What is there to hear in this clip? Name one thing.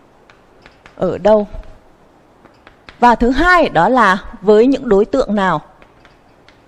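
A woman speaks clearly, close by.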